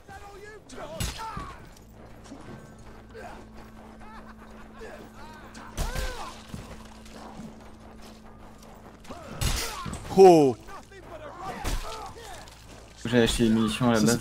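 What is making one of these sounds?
A sword strikes flesh with heavy thuds.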